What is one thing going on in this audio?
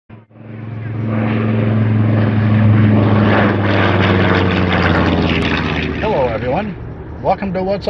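A propeller plane's engine roars loudly as it flies past overhead.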